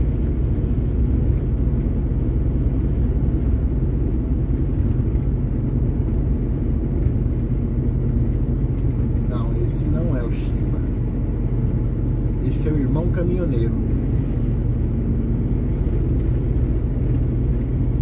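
A vehicle's engine and tyres rumble steadily on the road.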